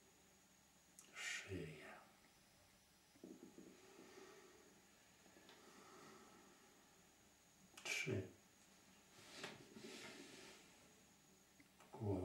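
An elderly man speaks softly and slowly, close by.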